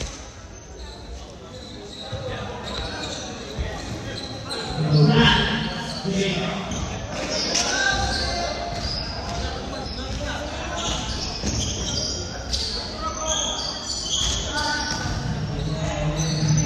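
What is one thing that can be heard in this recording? Young players shout and cheer loudly in a large echoing hall.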